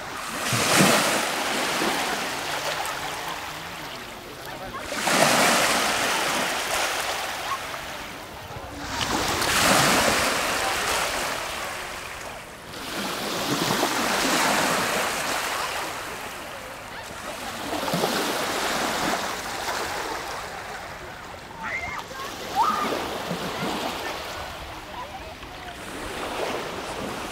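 Small waves wash up on a sandy shore in regular surges.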